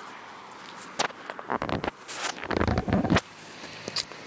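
Close rustling and rubbing of fabric and skin brush against the microphone.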